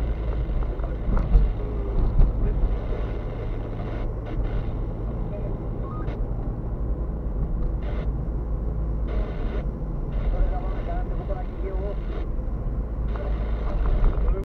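A car drives along an asphalt road, heard from inside, with a low rumble of engine and tyres.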